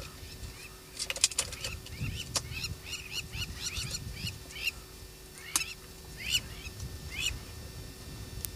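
A small animal gives quick, repeated high chirps nearby.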